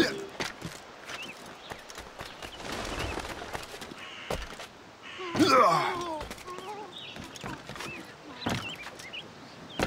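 Footsteps patter quickly across a tiled roof.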